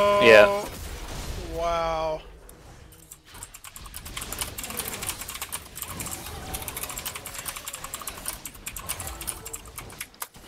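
Game combat effects crackle and clash rapidly.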